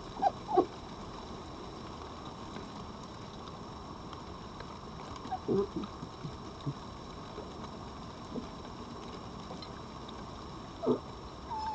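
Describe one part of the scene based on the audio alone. Foxes chew and lick food from plates close by.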